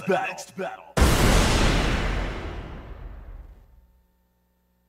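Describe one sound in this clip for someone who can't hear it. A heavy booming crash hits and slowly rings away.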